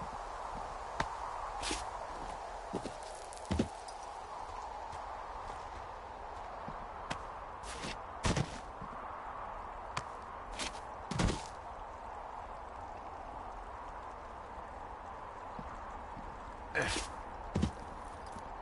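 Hands and boots knock and scrape against rock while climbing.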